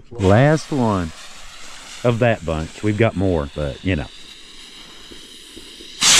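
A firework fuse fizzes and sizzles.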